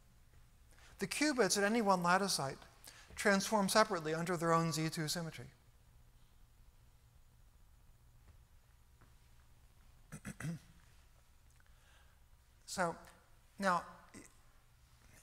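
An elderly man lectures calmly through a microphone.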